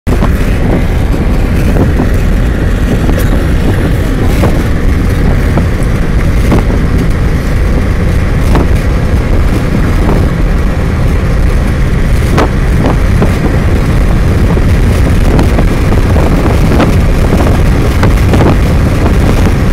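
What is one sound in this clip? Wind buffets loudly against the moving vehicle.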